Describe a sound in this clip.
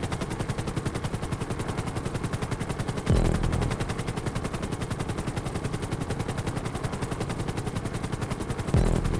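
Helicopter rotor blades chop rapidly and steadily.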